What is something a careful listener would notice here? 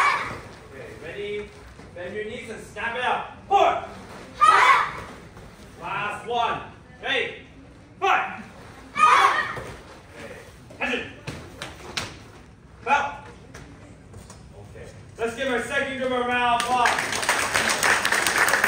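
Children shout together in loud bursts in an echoing hall.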